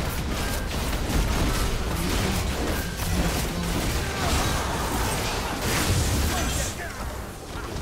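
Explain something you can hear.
Video game combat effects clash and crackle.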